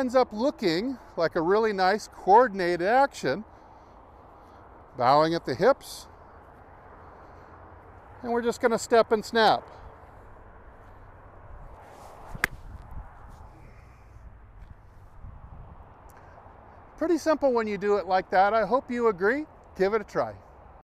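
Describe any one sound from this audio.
A man speaks calmly and clearly into a close microphone.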